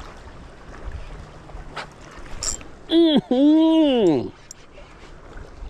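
Wind blows outdoors across open water.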